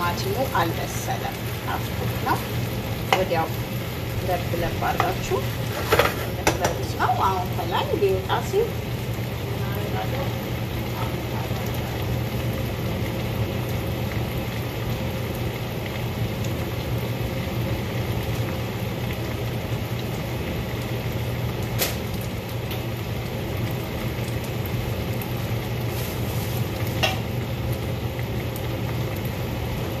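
Food sizzles in a pan.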